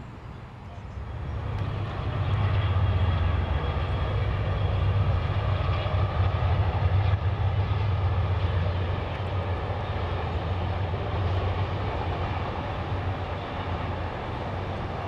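A train rumbles past in the distance on a bridge.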